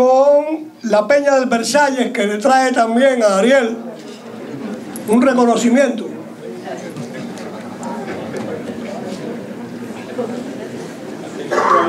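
An elderly man speaks into a microphone over a loudspeaker.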